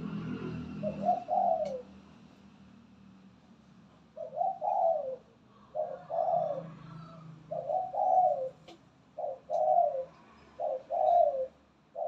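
A spotted dove coos in short repeated phrases close by.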